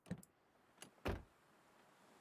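A car door thuds shut.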